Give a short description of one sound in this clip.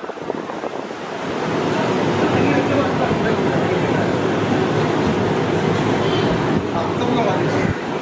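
A crowd of men chants and murmurs together in a room.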